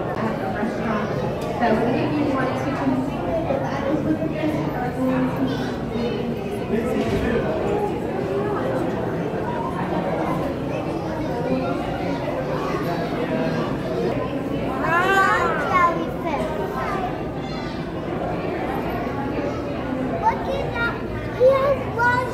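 A crowd of people chatters around a large indoor hall.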